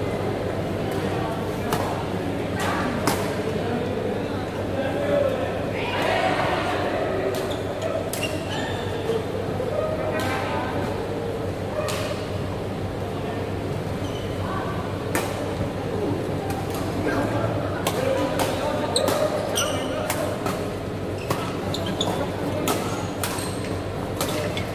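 Shoes squeak on a court floor.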